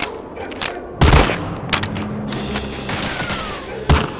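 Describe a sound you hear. Rifle shots ring out loudly.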